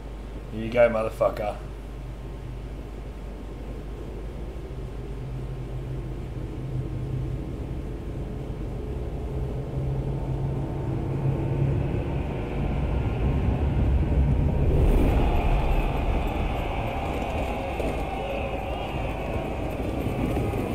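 Strong wind howls steadily and slowly grows louder.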